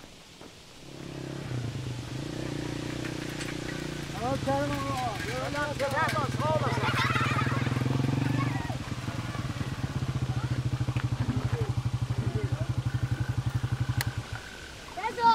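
A motorcycle engine putters close by.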